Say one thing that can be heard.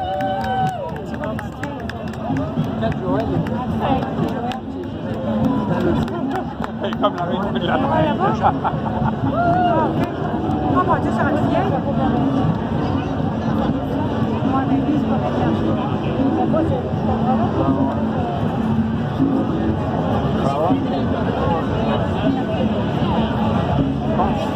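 An outdoor crowd chatters and cheers all around.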